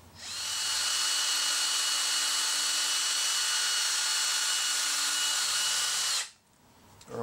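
An electric drill whirs steadily at high speed.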